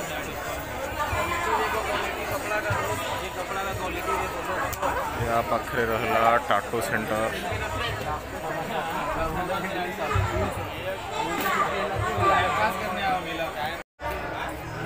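A crowd of people chatter nearby, with many voices overlapping.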